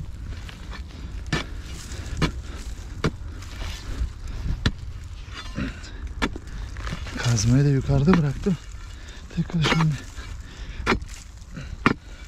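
Boots crunch on dry dirt and twigs.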